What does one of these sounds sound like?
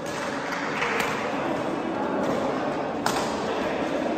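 A shuttlecock is struck sharply with a racket in an echoing hall.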